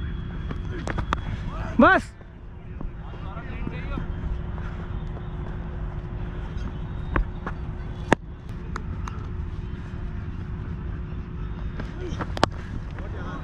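A cricket bat sharply strikes a ball.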